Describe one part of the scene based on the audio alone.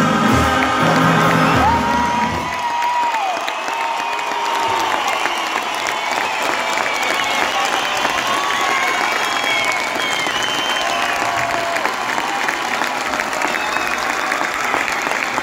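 A huge crowd cheers and whistles in the open air.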